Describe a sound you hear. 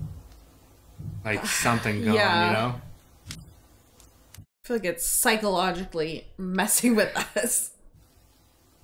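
A young woman talks and reacts with animation nearby.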